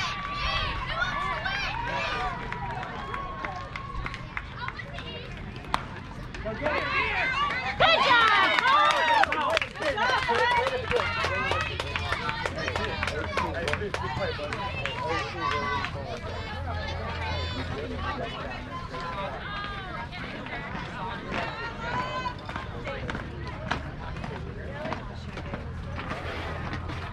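A crowd of adults and children cheers and shouts loudly from nearby.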